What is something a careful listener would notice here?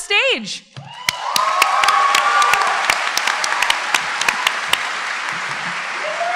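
A large audience applauds and cheers in a large hall.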